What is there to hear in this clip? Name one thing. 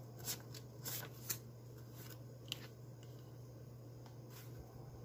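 Plastic banknotes rustle and flick as a hand counts them.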